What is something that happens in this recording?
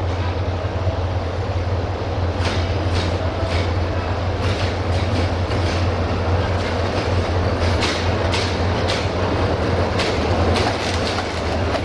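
An electric locomotive rumbles and hums as it slowly pulls into the station.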